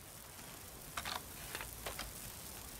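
Metal clicks and clanks sharply as a gun is handled.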